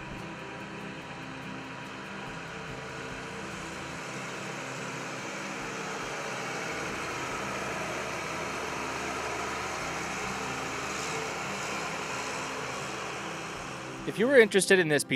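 A combine harvester's diesel engine rumbles steadily as the machine drives slowly past.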